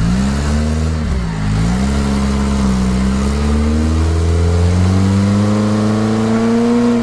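An off-road vehicle's engine roars loudly, dipping briefly and then revving higher.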